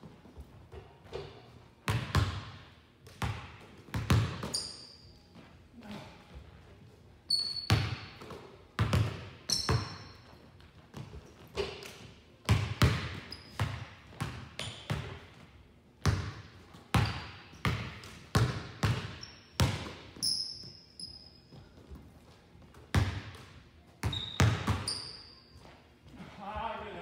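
Basketballs bounce on a hardwood floor, echoing in a large hall.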